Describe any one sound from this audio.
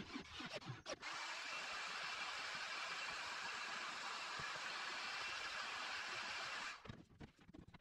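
A heat gun blows with a steady loud hiss.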